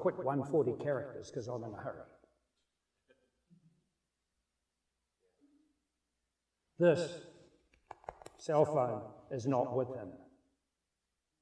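A middle-aged man speaks with animation through a microphone, pausing between phrases.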